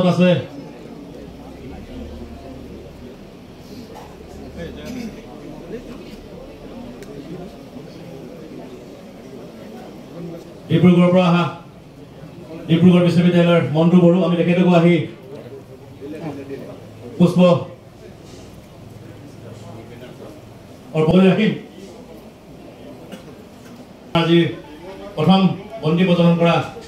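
A man calls out loud, drawn-out chants nearby.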